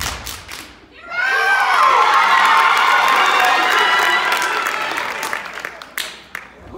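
An audience cheers and shouts.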